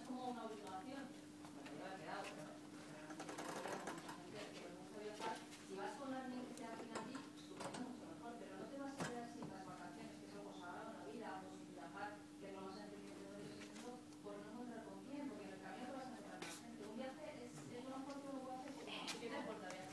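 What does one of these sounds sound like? A woman talks calmly through a loudspeaker.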